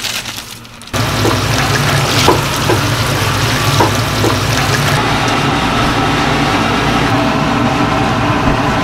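Water sloshes as pieces are stirred by hand.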